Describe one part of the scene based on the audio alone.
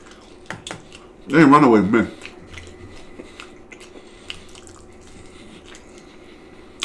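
Crispy food crunches loudly as a man bites and chews it.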